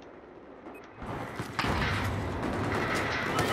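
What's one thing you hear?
Gunfire and explosions roar loudly and steadily.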